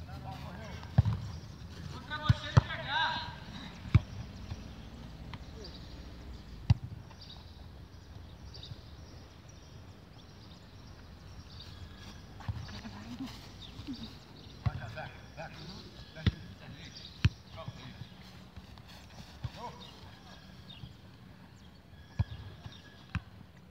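A football thuds as it is kicked on grass.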